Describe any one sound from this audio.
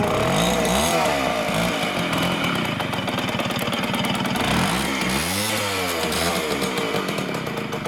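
A motorcycle engine revs up sharply and falls back.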